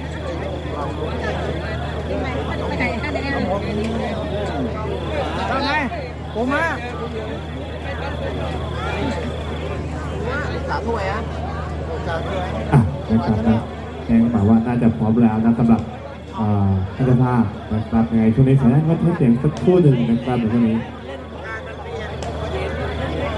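A crowd of young women chatters outdoors.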